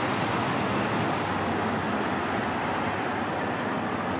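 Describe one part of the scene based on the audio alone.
A bus engine idles nearby with a low rumble.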